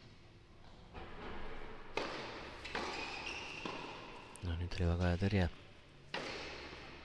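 Tennis rackets strike a ball back and forth.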